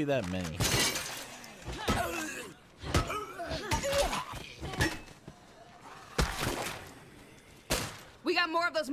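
A gun fires with sharp bangs.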